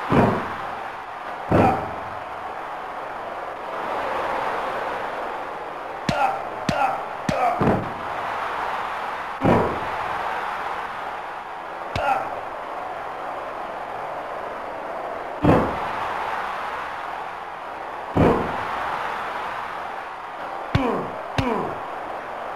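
Heavy thuds of wrestlers hitting the ring mat ring out now and then.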